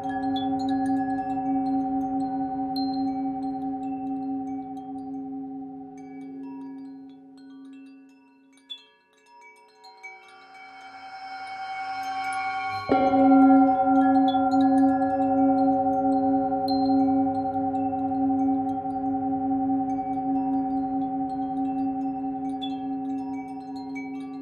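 A metal singing bowl hums with a steady, ringing tone that slowly fades and then swells again.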